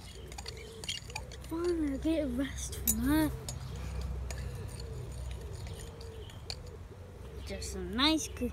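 A spoon clinks against a glass bowl.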